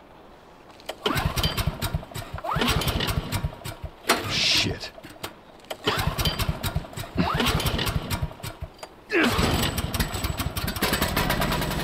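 A small engine sputters and coughs repeatedly without catching.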